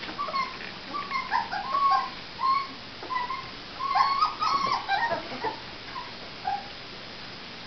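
A puppy whines and yelps in short, high cries close by.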